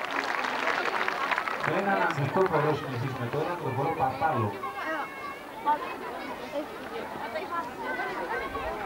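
A crowd chatters outdoors.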